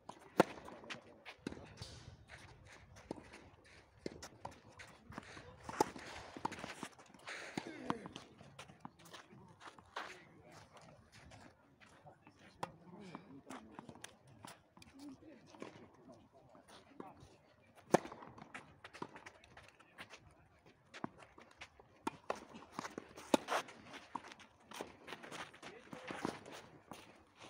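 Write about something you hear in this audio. Shoes scuff and slide on a clay court.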